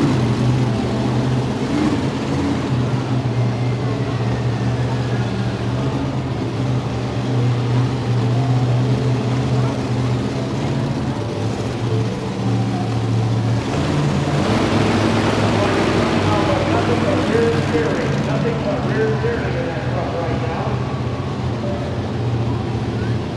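A monster truck engine roars loudly in an echoing arena.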